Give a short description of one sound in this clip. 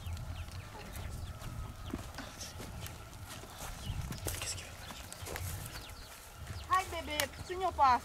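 A horse's hooves thud softly on dry dirt as it walks.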